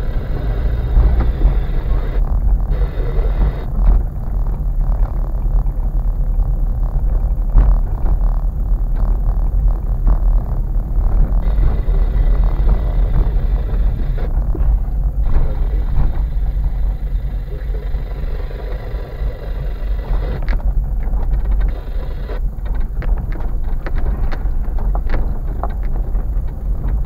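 The car's body creaks and knocks over bumps.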